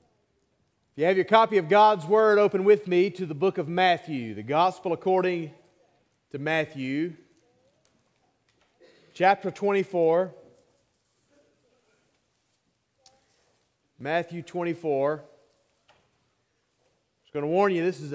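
A man speaks with animation through a microphone, pausing between phrases.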